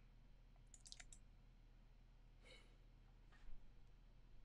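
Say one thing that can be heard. A man murmurs softly, close to a microphone.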